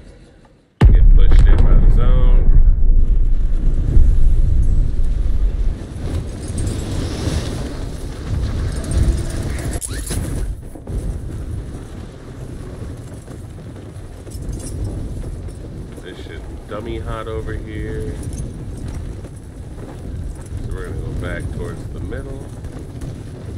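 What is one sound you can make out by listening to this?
A man speaks into a close microphone with animation.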